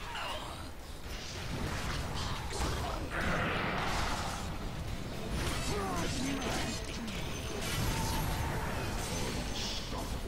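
Game combat effects crackle, whoosh and clash in a busy fight.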